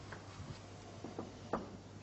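A snooker ball is set down softly on a table's cloth.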